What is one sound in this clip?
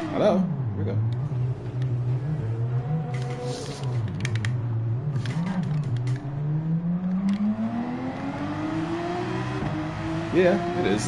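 A racing car engine drops in pitch while braking, then revs steadily higher as it accelerates.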